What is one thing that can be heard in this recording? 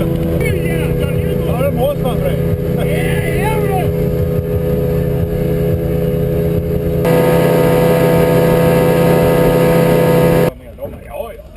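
A boat engine roars steadily.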